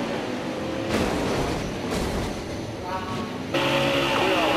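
A car crashes and scrapes along a barrier.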